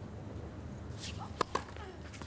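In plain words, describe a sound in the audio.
A tennis player serves, striking the ball with a sharp pop.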